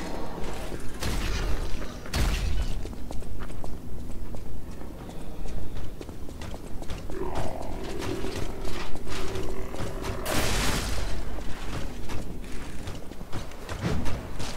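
Footsteps crunch on dirt and wood.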